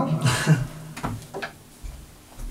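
A guitar knocks against the floor as it is set down.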